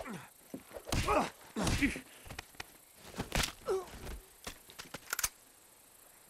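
Heavy blows land in a scuffle.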